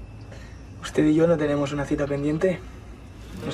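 A young man speaks softly and playfully nearby.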